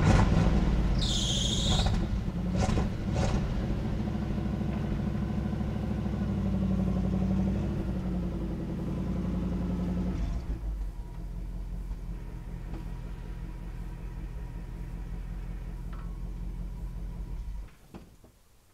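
A truck engine idles with a low, steady rumble nearby, then cuts off.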